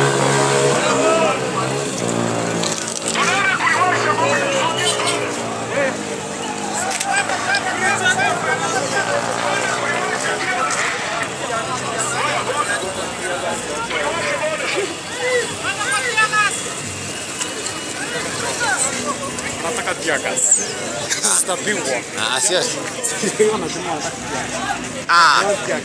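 A crowd of men and women talk and shout outdoors.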